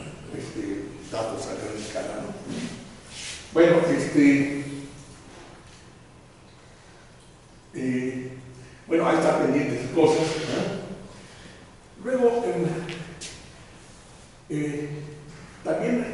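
An elderly man speaks calmly, lecturing in a room with a slight echo.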